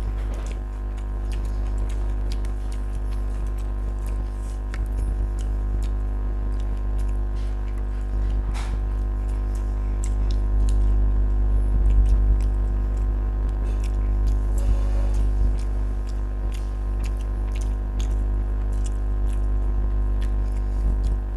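Fingers squish and mix rice with sauce.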